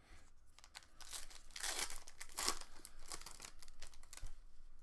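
A foil card wrapper crinkles and tears.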